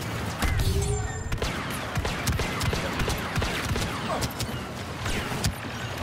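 Blaster shots zap and crack rapidly.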